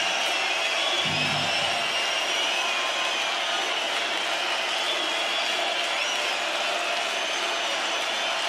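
A huge crowd cheers and screams loudly in a vast open space.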